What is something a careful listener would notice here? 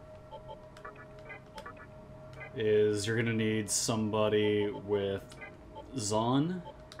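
Short electronic menu blips click several times.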